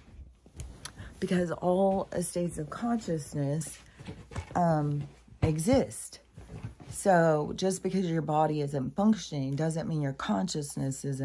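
An older woman speaks close to the microphone, with animation.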